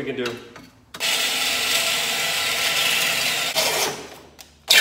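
A cordless drill whirs steadily.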